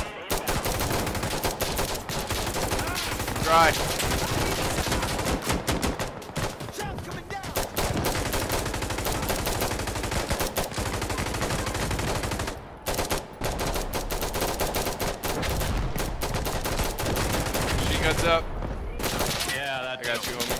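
Rifles fire in rapid bursts nearby, with sharp cracks echoing outdoors.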